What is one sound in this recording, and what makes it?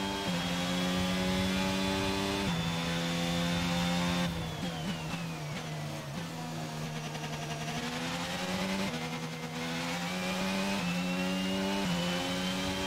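A racing car engine roars at high revs, dropping in pitch on braking and rising again as the car speeds up.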